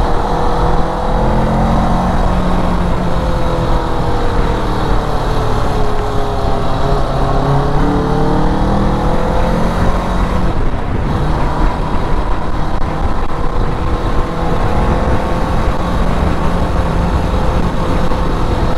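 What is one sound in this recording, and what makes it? A motorcycle engine hums steadily while riding, rising and falling in pitch as it shifts.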